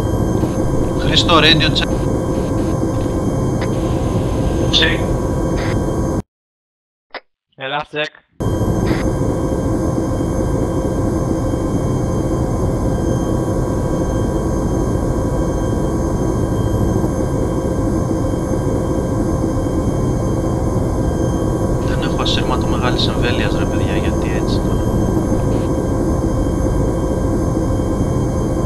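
A helicopter's engine and rotor drone steadily from inside the cabin.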